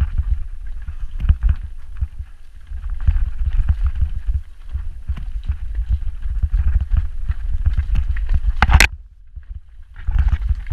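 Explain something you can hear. Tyres rattle and crunch over a rocky trail.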